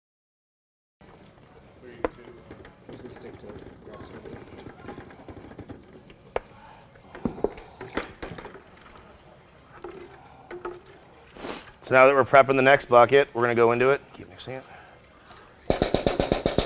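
Paddles stir liquid in plastic buckets, knocking against the sides.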